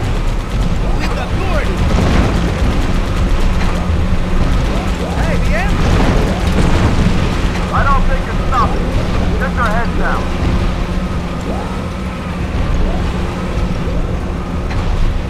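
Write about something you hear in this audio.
A huge walking machine rumbles with a steady low hum.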